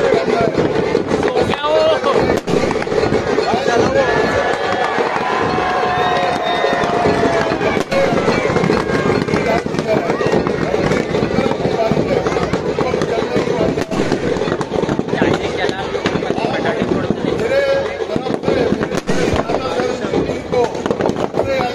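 A bonfire roars and crackles.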